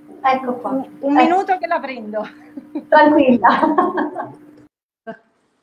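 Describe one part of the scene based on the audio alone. A middle-aged woman talks with animation over an online call.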